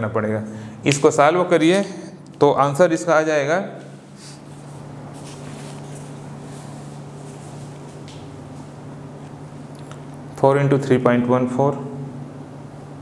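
A middle-aged man speaks calmly into a close microphone, explaining.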